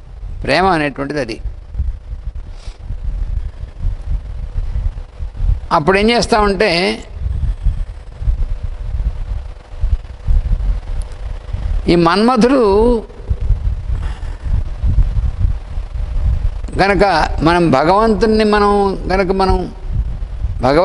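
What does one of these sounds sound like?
An elderly man chants slowly into a microphone in short, drawn-out phrases with pauses between them.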